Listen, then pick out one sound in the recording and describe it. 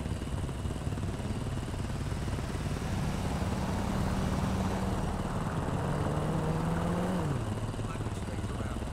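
Motorcycle engines idle with a low rumble.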